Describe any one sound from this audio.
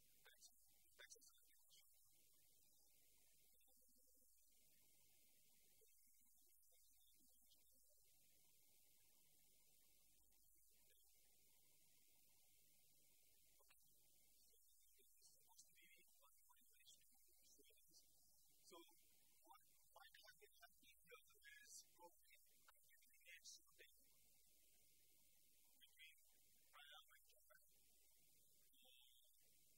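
A man lectures calmly, faint and far off.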